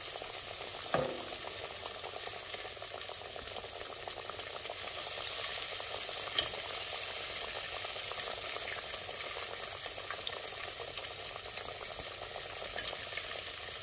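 Metal tongs clink against a pot.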